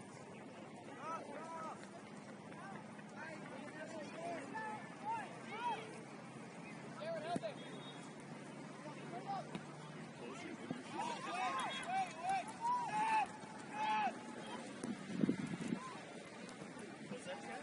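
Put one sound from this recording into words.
Young players shout to each other from a distance across an open field.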